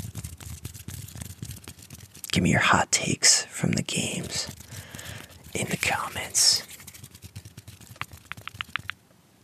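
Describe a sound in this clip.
Fingers rub and tap softly right next to a microphone.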